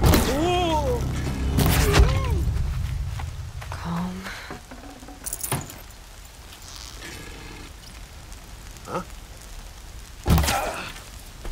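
An arrow is loosed from a bow with a sharp snap.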